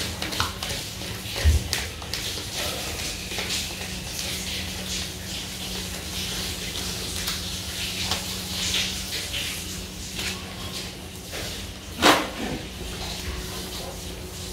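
Paper banknotes rustle softly as they are counted.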